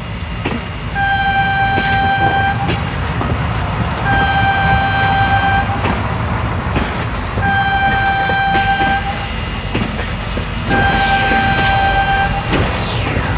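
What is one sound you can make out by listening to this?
A train horn blows in long, repeated blasts.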